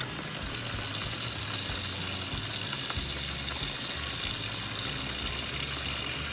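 Running water splashes steadily into a bowl of water.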